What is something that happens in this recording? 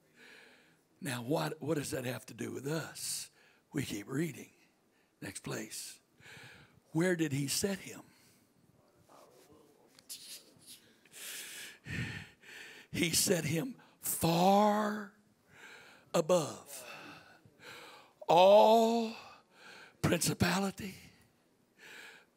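An older man speaks with animation through a microphone and loudspeakers in a large room.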